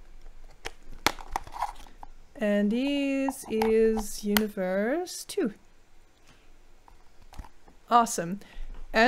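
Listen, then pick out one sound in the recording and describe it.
Plastic packaging crinkles in a young woman's hands.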